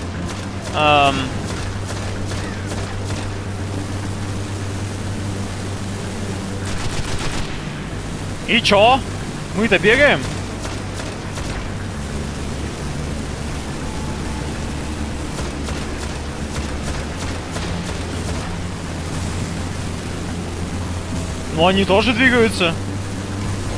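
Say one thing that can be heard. A crackling electric blast bursts loudly.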